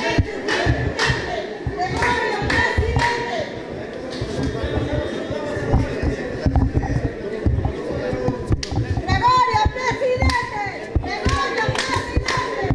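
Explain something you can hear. A crowd of adults chatters in an echoing hall.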